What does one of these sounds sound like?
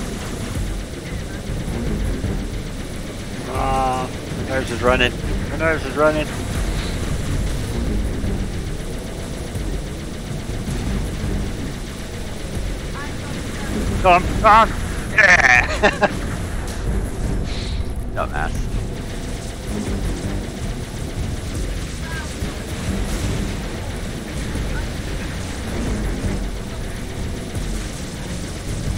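A hovering vehicle's engine hums steadily throughout.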